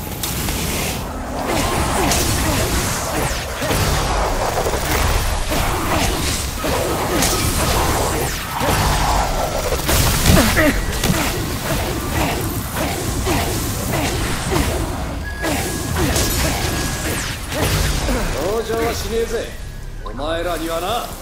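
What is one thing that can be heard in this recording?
Magic blasts crackle and burst in quick bursts.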